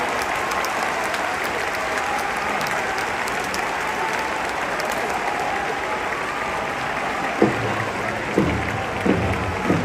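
A large stadium crowd chants and cheers loudly.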